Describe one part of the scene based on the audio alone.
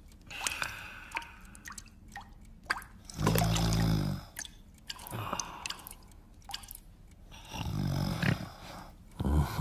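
A man snores loudly in his sleep.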